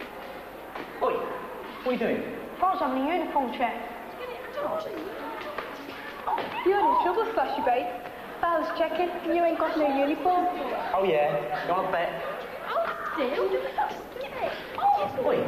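Teenage boys talk with each other nearby.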